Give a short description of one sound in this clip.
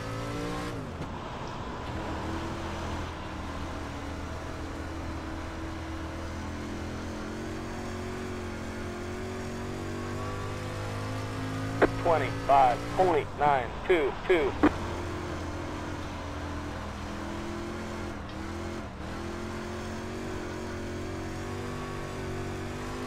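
A race car engine roars steadily, rising and falling with speed.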